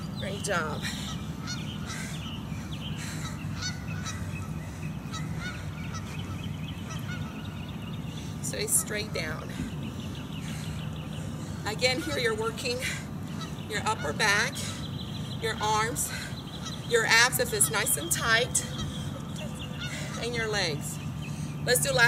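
A woman gives exercise instructions in an upbeat voice.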